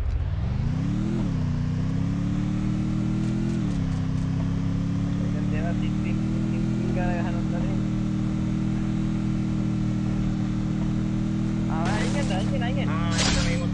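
A motorbike engine drones steadily, revving up and dropping back.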